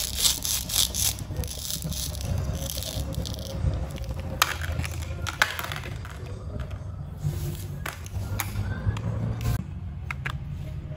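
Plastic toy pieces click and rustle as they are handled.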